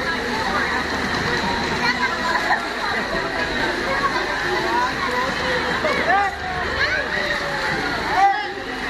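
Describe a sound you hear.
Children shout and squeal in the distance.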